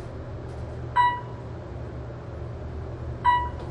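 An elevator chime rings twice.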